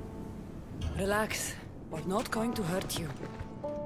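A woman answers calmly.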